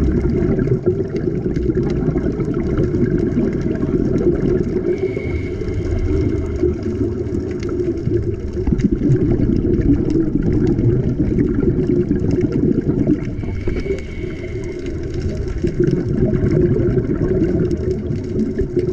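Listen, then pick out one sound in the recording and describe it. A low, steady underwater rumble fills the water.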